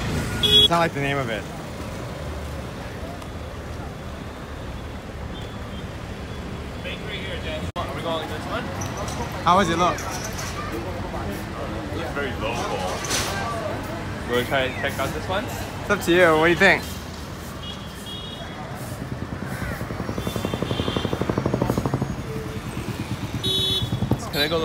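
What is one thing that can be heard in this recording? City traffic rumbles steadily in the background.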